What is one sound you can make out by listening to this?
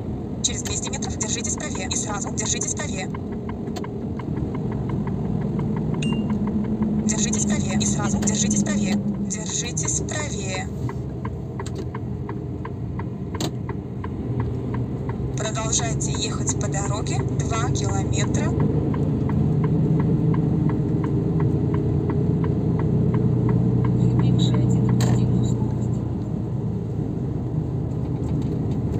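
A vehicle's engine rumbles steadily, rising and falling as it drives.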